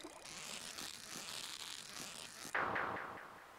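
A fishing reel whirs as a line is reeled in.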